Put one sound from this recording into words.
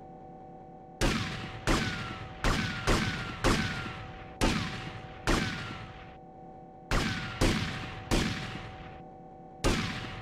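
A pistol fires shot after shot in short bursts.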